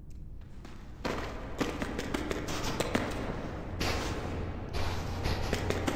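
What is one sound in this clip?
Light footsteps patter on a stone floor.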